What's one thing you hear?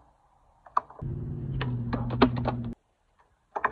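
A skateboard grinds along a metal-edged ledge.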